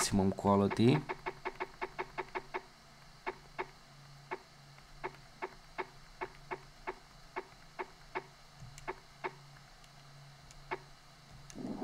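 Short electronic ticks sound in quick succession as a handheld game console's menu is scrolled.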